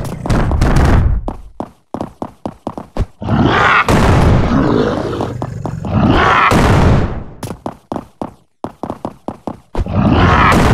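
Footsteps thud on a creaking wooden floor.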